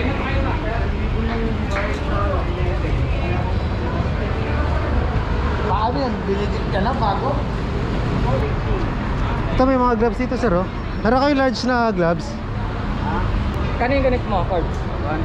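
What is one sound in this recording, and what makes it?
A crowd of people chatters and calls out along a busy street.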